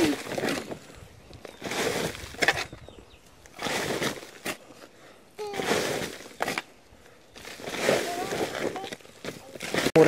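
A hoe scrapes and chops into dry soil.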